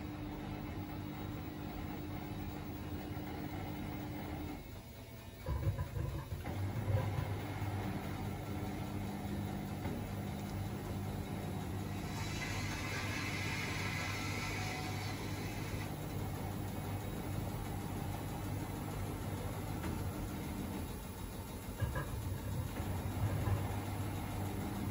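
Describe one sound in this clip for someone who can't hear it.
Wet laundry tumbles and sloshes inside a washing machine.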